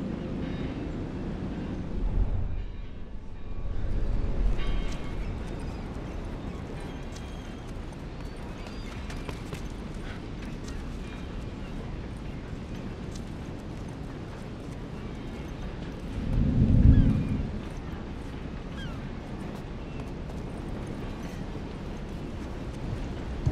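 Footsteps scuff softly on concrete.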